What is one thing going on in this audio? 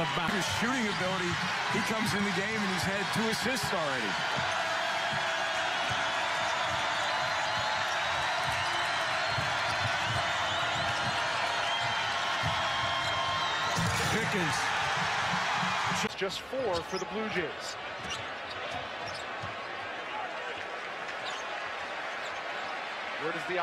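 A large crowd roars and cheers in an echoing arena.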